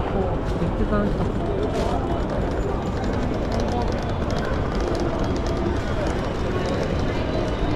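Suitcase wheels rattle over paving stones.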